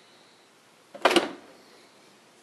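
A dishwasher door drops open with a clunk.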